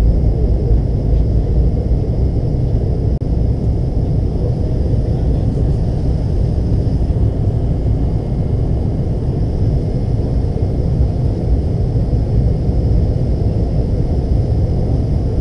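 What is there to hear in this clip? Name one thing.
A jet aircraft's engines roar steadily in the cabin.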